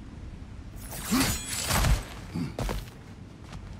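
Loud whooshing thuds burst out as a warrior leaps and lands.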